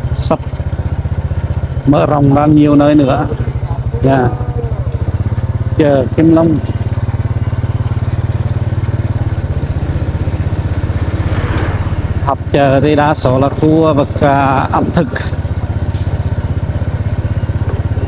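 A motorbike engine putters steadily close by.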